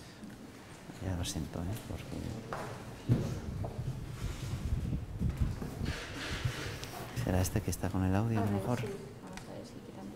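A man speaks nearby in a room with a slight echo.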